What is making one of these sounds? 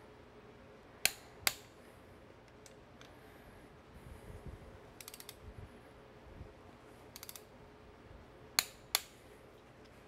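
A torque wrench clicks sharply as a bolt is tightened.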